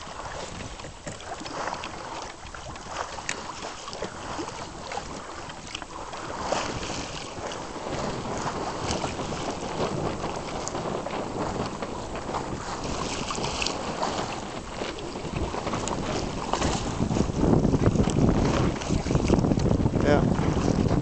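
Wind gusts and rumbles outdoors, growing stronger.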